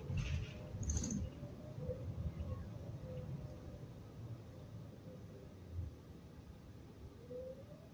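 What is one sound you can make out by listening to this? A bus engine rumbles low and steady while the bus drives.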